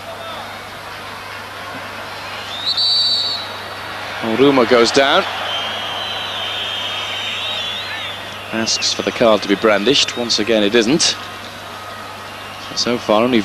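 A large crowd murmurs and chants in a stadium, heard from afar.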